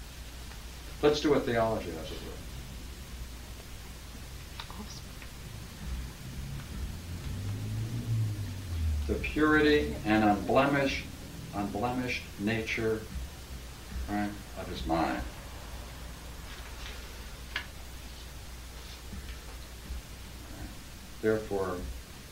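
An older man speaks calmly in bursts.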